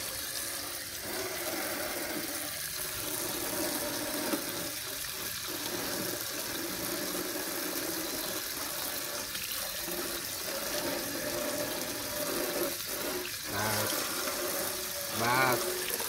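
Hands scrub and rub a metal pan under running water.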